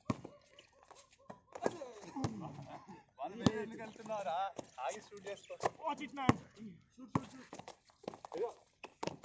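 A basketball bounces sharply on a hard outdoor court.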